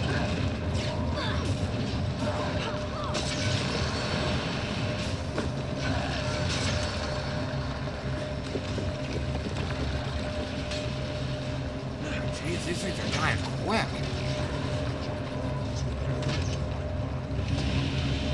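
Fantasy battle sounds crackle and burst with magic blasts and hits.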